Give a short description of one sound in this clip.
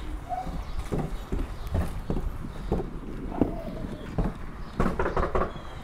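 Footsteps thud on wooden porch steps.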